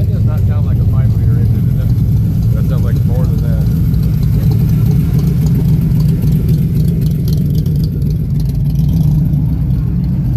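A second sports car engine rumbles as it drives by close up.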